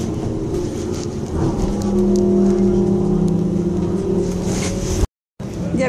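An engine hums steadily from inside a moving vehicle.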